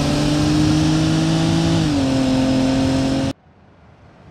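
A car engine drones loudly at a steady pitch, then drops slightly.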